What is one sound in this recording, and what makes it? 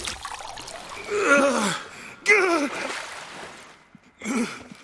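A young woman gasps for breath.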